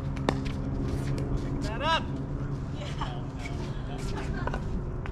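Paddles strike a plastic ball with sharp pops outdoors.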